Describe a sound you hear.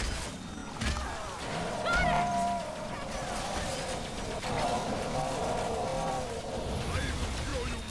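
A large beast roars and growls.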